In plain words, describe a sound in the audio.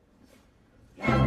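An orchestra strikes up with a sudden loud chord.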